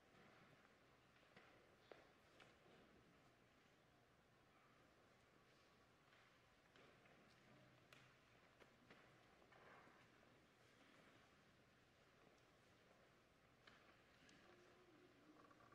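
Footsteps tap softly on a hard floor in a large echoing hall.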